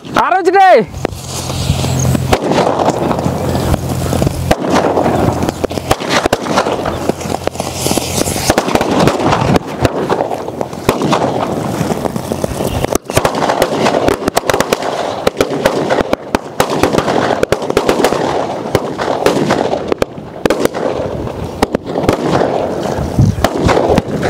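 Firecrackers crackle and pop rapidly outdoors.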